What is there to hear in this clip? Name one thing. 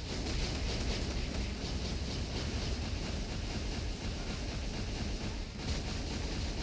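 Game explosions and blasts boom loudly.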